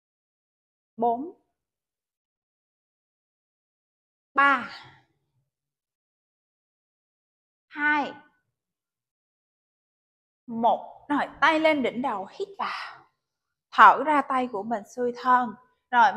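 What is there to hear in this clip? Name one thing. A woman calls out instructions in short bursts, heard close and clear.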